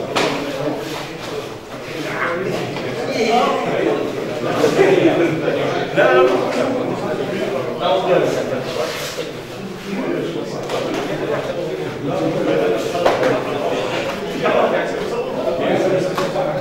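Bare feet thud and slide on mats.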